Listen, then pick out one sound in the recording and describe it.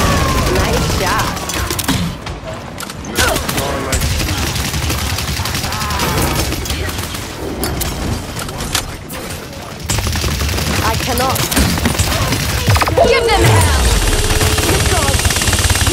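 A game gun fires in rapid bursts.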